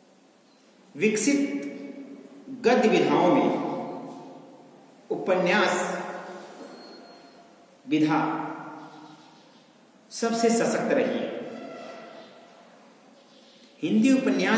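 A man speaks calmly and clearly, as if teaching, in a room with a noticeable echo.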